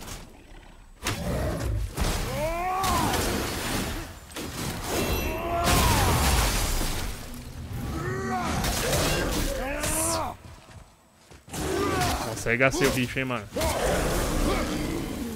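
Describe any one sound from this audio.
Heavy blows and crashes ring out in a fight.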